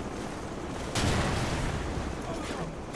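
A rocket launcher fires with a loud blast and whoosh.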